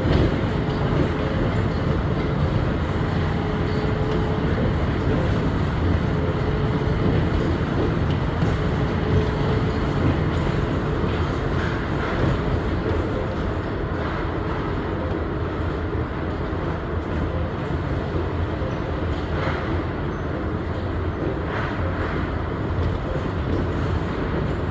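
A train rumbles steadily along the rails through an echoing tunnel.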